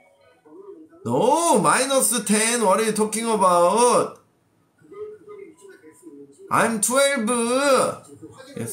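A young man sings in a melodic voice close by.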